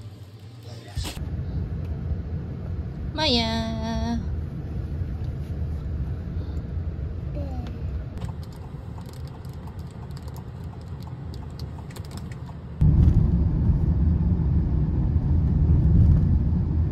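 A car's engine rumbles low and steady from inside the car.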